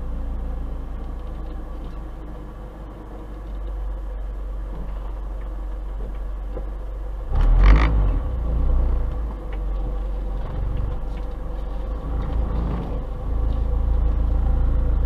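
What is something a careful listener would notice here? A car engine hums low and steady close by.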